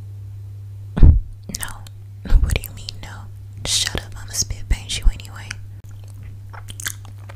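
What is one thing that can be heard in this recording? A young woman makes soft mouth sounds close to a microphone.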